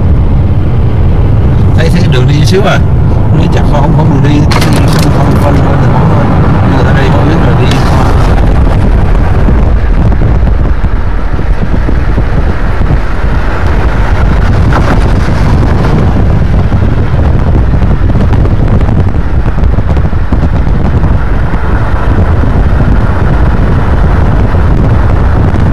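Wind rumbles loudly against the car.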